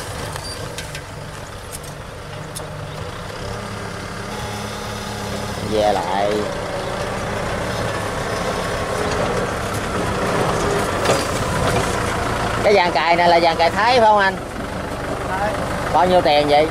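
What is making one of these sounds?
Plough discs cut and turn over soil.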